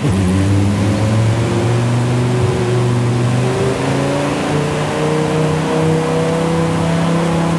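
A sports car engine roars steadily, rising in pitch as the car speeds up.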